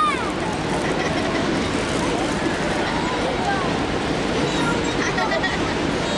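A large stadium crowd murmurs all around, outdoors.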